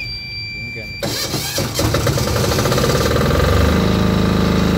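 A generator engine starts up with a rough, rising rumble.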